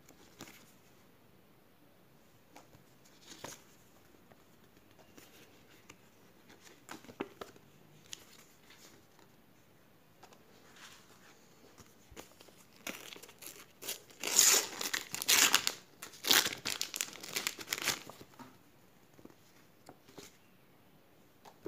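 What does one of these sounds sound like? Paper stickers rustle and tap as they are handled.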